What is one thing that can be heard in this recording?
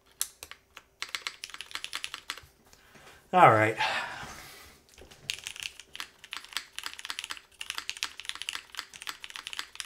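Keys clatter rapidly as someone types on a mechanical keyboard.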